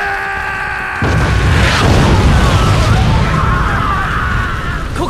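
A huge explosion roars with fire.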